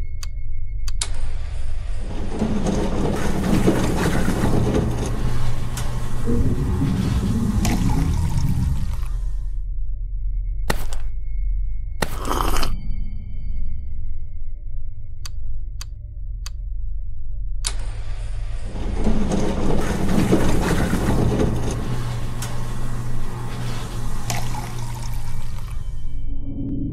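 A vending machine whirs and pours a drink.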